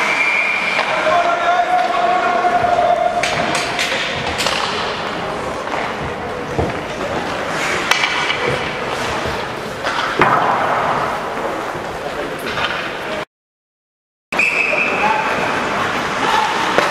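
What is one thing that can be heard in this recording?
Skate blades scrape across the ice.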